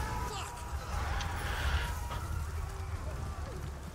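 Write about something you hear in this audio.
A large explosion booms nearby.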